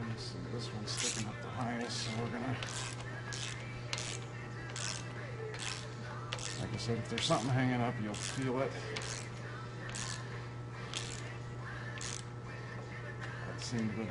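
A ratchet wrench clicks in short, repeated bursts.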